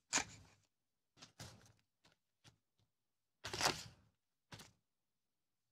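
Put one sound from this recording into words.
Small scissors snip through paper.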